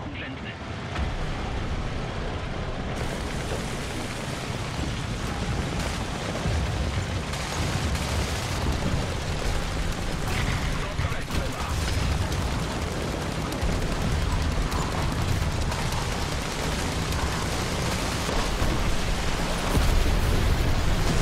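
A heavy tank engine rumbles loudly as the tank drives.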